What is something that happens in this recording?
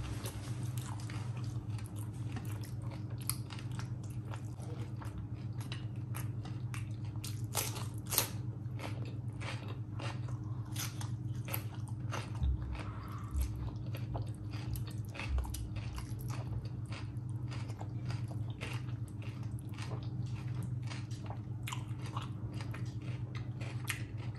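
Fingers squish and mix wet, saucy food.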